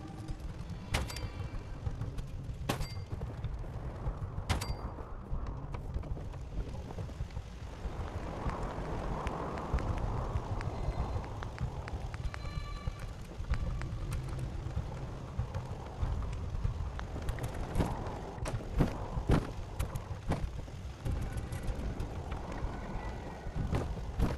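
Short menu clicks and chimes sound now and then.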